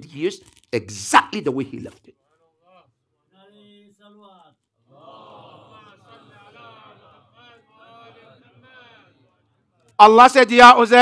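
A man preaches with animation into a microphone.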